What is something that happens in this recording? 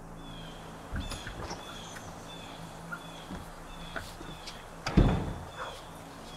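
A door opens and thuds shut.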